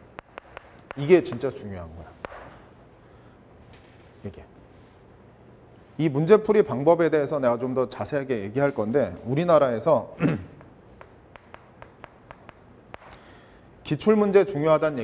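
A man lectures calmly through a clip-on microphone.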